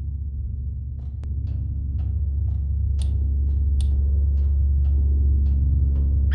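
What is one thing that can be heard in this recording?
Footsteps clank on a metal floor at a steady walking pace.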